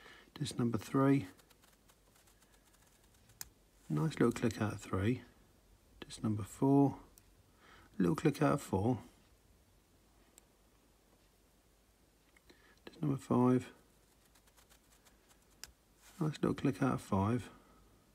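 A small metal tool scrapes and clicks inside a padlock.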